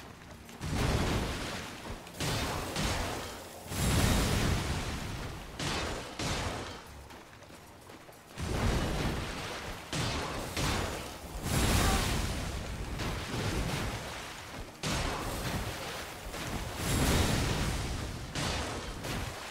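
Water splashes heavily in loud bursts.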